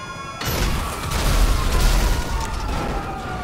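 An explosion booms nearby and rumbles.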